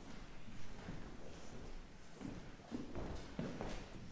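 Footsteps walk across a hard floor in a large echoing hall.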